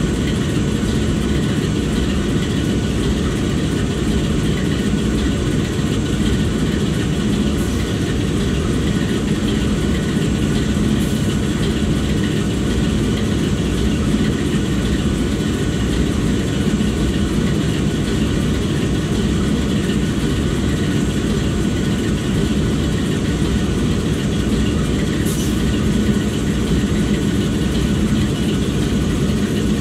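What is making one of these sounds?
A diesel locomotive engine idles with a steady low rumble.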